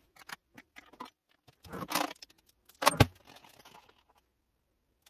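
Objects clink and knock against a pot.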